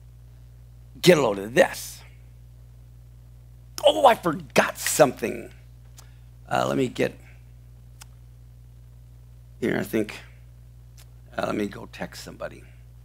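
An older man speaks with animation into a close microphone, in short bursts with pauses.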